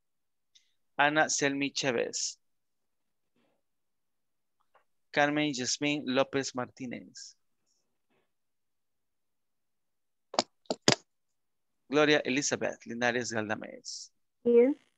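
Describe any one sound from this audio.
A woman speaks through an online call, in short bursts with pauses.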